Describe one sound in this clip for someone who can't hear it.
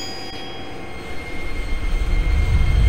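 A train's motor rumbles louder as the train starts to move.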